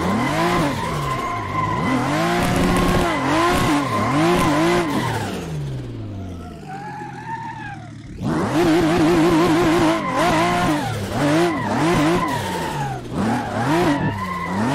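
Tyres squeal on tarmac.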